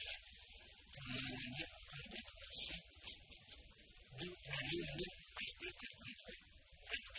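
A man speaks faintly at a distance.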